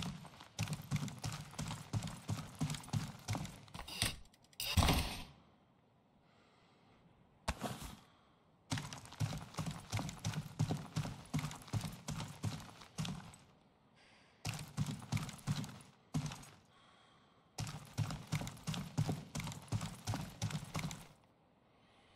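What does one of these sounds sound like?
Footsteps thud quickly on concrete.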